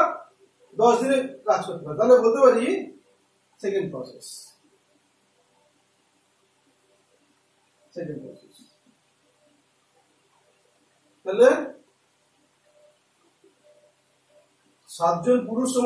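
A man speaks in short bursts with long pauses, explaining calmly.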